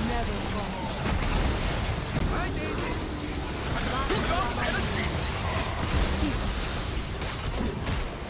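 Spell effects crackle and burst in quick succession.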